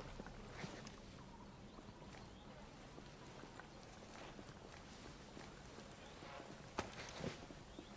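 Footsteps shuffle softly over dirt and leaves.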